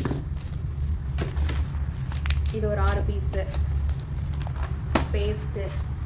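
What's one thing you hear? Small cardboard boxes tap and rustle as hands shift them in a carton.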